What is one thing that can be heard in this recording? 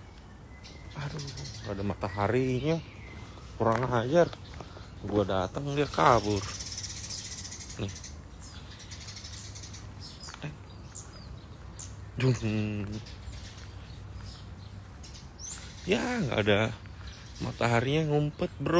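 A young man talks casually, close by, in short bursts.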